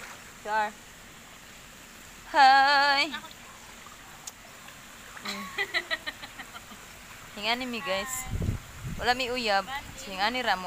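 A young woman talks animatedly close by.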